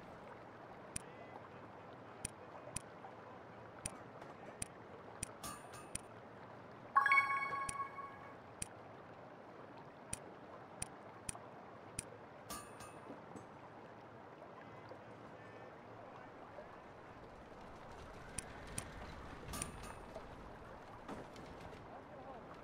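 Soft menu clicks tick at irregular intervals.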